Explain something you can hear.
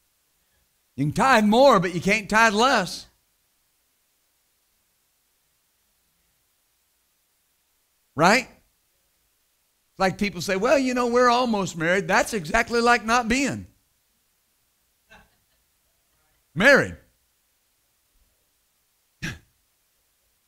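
A middle-aged man speaks with animation into a microphone, in short bursts with long pauses.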